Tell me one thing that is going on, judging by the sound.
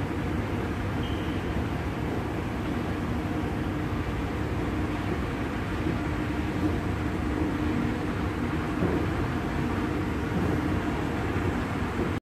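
A moving walkway hums and rumbles steadily.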